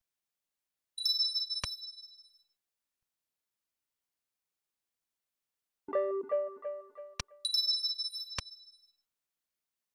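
Short bright chimes ring out as menus pop up.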